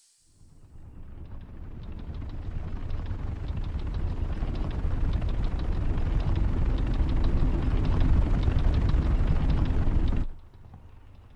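A huge machine rumbles deeply and grows louder as it passes overhead.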